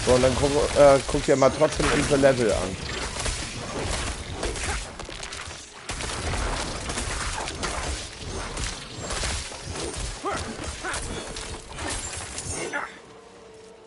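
Blows and magic blasts crash loudly and rapidly in a fierce fight.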